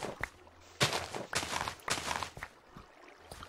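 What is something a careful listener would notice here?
Dirt crunches with repeated scraping digs.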